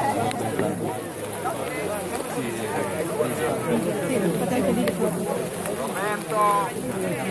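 Rain patters on umbrellas.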